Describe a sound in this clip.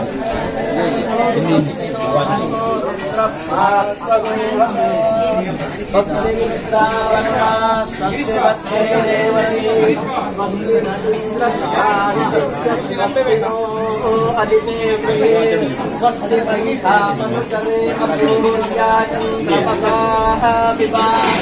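A man chants in a steady sing-song voice nearby.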